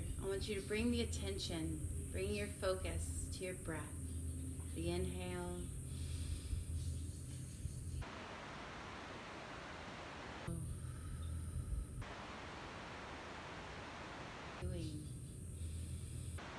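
A woman speaks calmly and softly close to the microphone.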